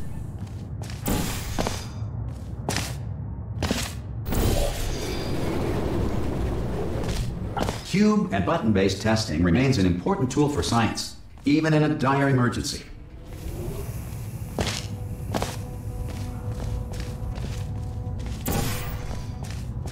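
A sci-fi gun fires with short, sharp zaps again and again.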